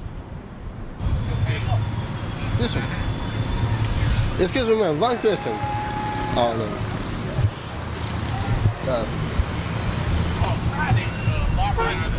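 City traffic rumbles nearby.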